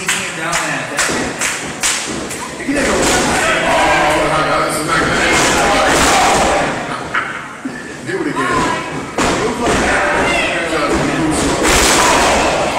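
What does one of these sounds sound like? Wrestlers slam down heavily onto a ring mat with loud thuds.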